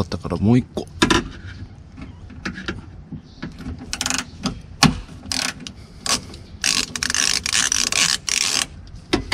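A hand tool clicks and rattles against metal.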